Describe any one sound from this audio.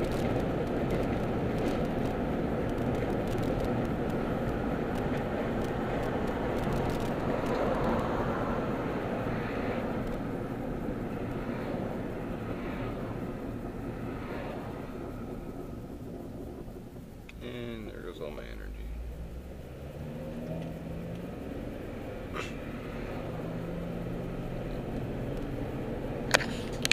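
A car's engine and tyres rumble steadily on the road from inside the car.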